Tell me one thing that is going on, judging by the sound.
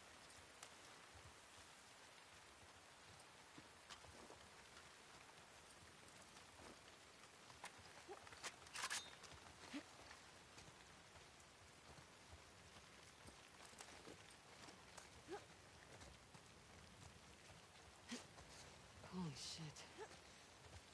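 Footsteps rustle through undergrowth and leaves.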